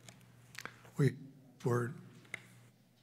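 A book is shut with a soft thump.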